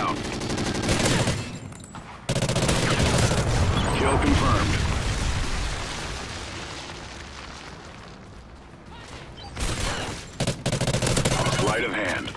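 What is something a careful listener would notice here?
A rifle fires in short, rapid bursts.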